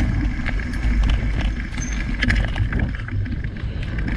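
Bicycle wheels thump over wooden boards.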